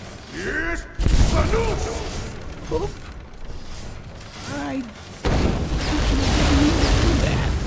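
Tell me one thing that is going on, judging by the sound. A frost spell blasts with a loud rushing roar.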